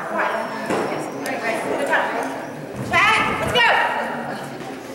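A woman calls out commands to a dog in a large echoing hall.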